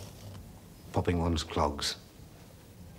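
A middle-aged man speaks briefly and calmly, close by.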